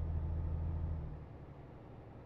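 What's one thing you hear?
A truck engine hums low and steadily.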